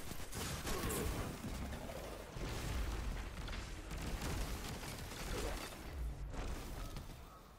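Gunfire and blasts crackle in a video game battle.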